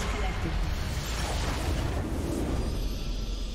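A magical blast bursts with a loud whoosh and rumble.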